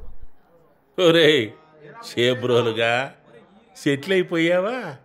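A man speaks in short, emotional phrases close by.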